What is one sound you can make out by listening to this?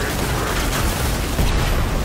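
Electricity crackles and fizzes.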